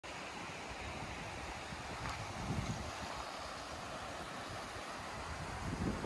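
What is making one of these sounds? A shallow river flows and ripples gently outdoors.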